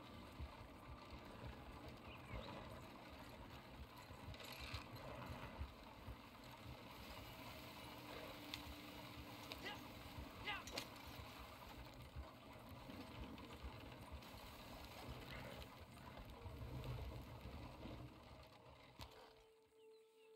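A wooden wagon rattles and creaks over a rough dirt track.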